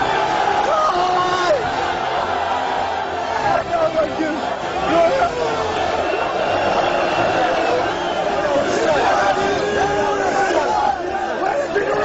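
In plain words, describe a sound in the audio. A man shouts excitedly close by.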